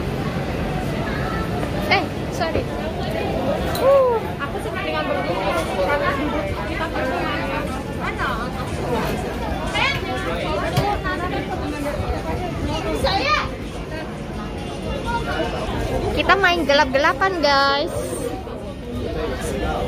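A crowd of people chatters all around indoors.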